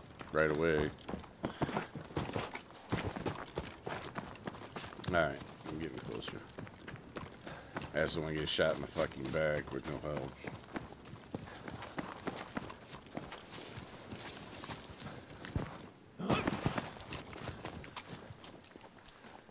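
Footsteps crunch on grass and rocky ground.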